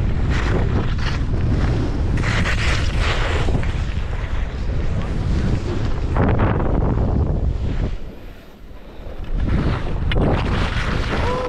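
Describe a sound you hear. Skis scrape and hiss over the snow.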